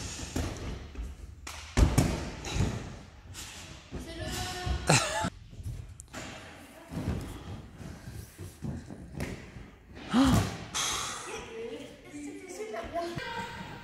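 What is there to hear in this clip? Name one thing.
Bodies thump down onto soft gym mats.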